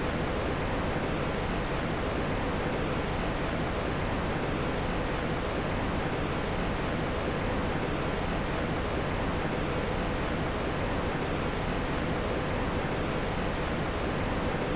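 A fire crackles steadily.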